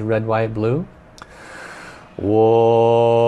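A middle-aged man takes a deep breath in.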